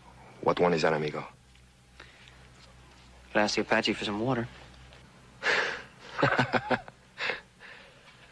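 A man speaks tensely, close by.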